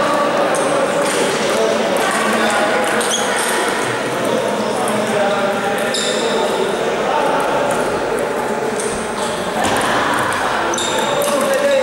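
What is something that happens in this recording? A table tennis ball clicks back and forth between paddles and the table.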